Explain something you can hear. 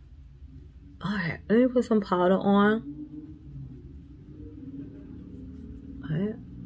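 A woman talks close to the microphone with animation.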